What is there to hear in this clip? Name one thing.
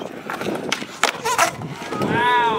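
A skateboard clacks against a concrete edge.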